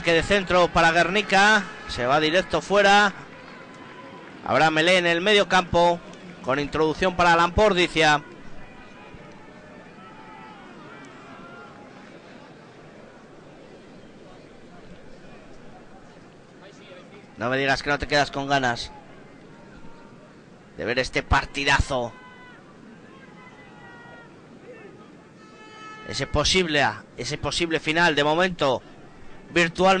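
A crowd murmurs in the distance, outdoors.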